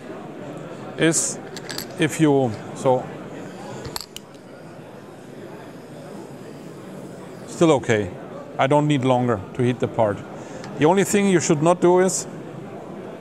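A middle-aged man speaks calmly through a clip-on microphone, in short bursts.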